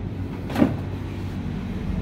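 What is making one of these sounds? A plastic bottle knocks as it is taken from a shelf.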